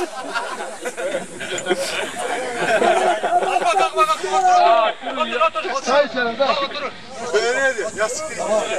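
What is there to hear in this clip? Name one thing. Several men talk over one another with animation outdoors.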